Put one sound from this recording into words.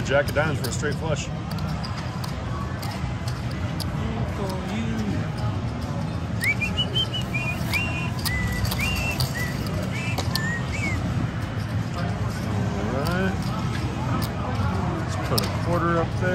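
Casino chips click together as they are stacked and moved.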